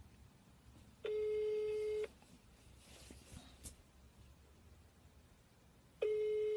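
A phone's ringback tone sounds through its earpiece in long beeps.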